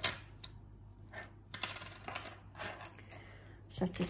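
Metal earrings clink softly as they are set down on a table.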